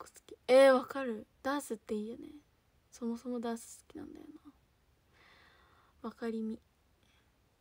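A young woman speaks softly and brightly, close to a microphone.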